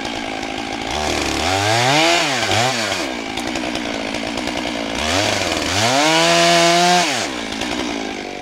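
A chainsaw revs up loudly twice and winds back down.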